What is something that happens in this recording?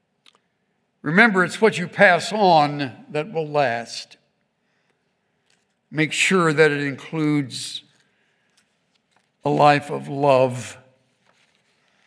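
An elderly man speaks slowly and deliberately through a microphone, with pauses.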